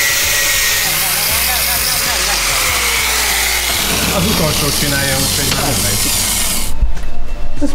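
An angle grinder whines loudly as it grinds metal.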